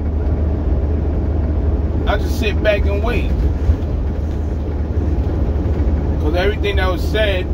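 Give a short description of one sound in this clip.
A truck engine hums low and steady.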